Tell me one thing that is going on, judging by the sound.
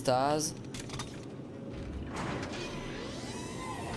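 A heavy metal door slides open.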